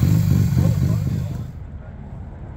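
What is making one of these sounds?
A car engine idles loudly close by.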